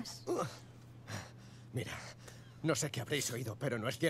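A man speaks in a pained, strained voice.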